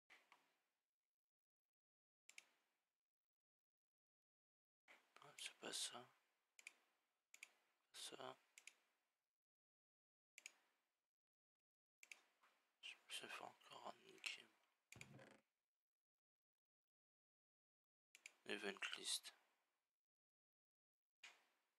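Mouse clicks tap now and then.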